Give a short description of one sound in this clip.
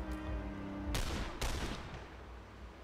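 Two loud gunshots ring out in quick succession.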